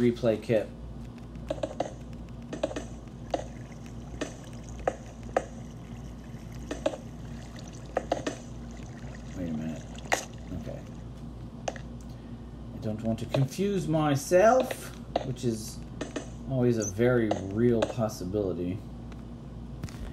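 Stone blocks are placed with short, dull knocks.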